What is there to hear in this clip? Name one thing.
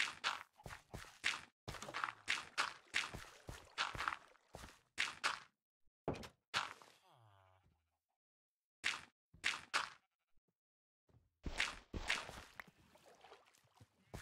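Dirt blocks thud softly as they are placed one after another.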